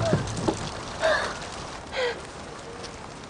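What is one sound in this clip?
A young woman gasps and whimpers faintly.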